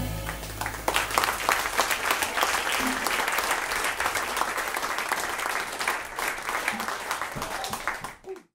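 A saxophone plays a melody.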